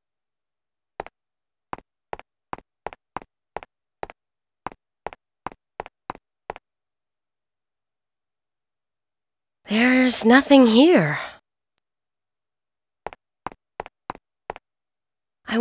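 Footsteps tap in a quick, even rhythm across a hard floor.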